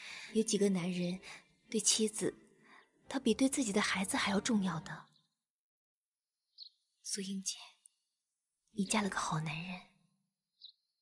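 A woman speaks calmly and softly up close.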